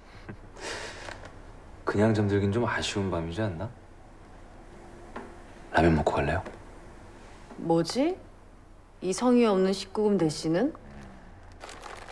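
A young woman talks.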